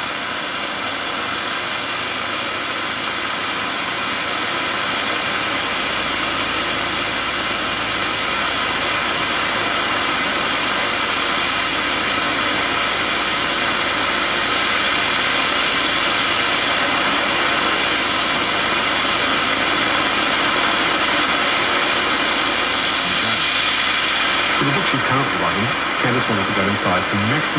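A valve radio hisses with static through its loudspeaker.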